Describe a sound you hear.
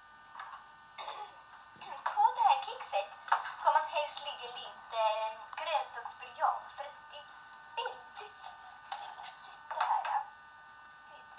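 A young girl talks, heard through a small loudspeaker.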